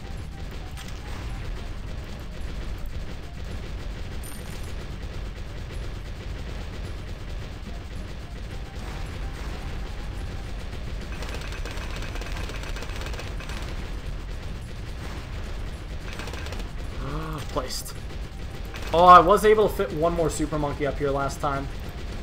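Game explosions pop and crackle rapidly throughout.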